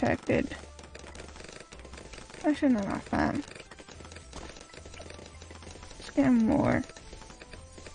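Cartoonish game pops and effects play in quick bursts.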